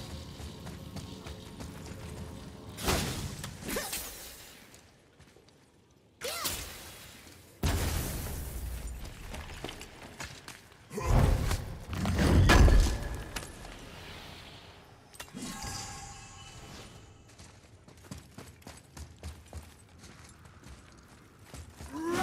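Heavy footsteps crunch on stone.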